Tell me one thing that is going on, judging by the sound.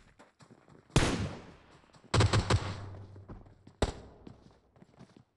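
Rifle shots crack loudly and echo away.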